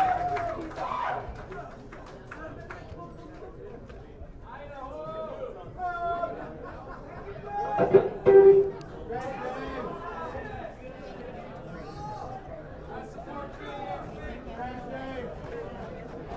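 A man speaks casually into a microphone through loudspeakers.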